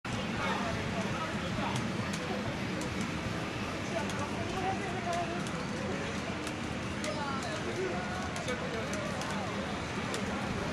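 Fighting game music plays from a game machine, amid a noisy crowd.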